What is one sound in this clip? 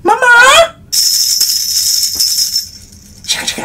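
A tambourine jingles.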